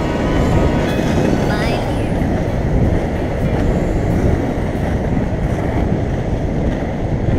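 Wind rushes loudly past, as if outdoors while moving fast.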